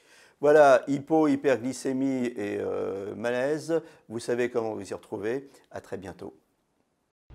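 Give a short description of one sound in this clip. A middle-aged man speaks calmly and with expression into a microphone.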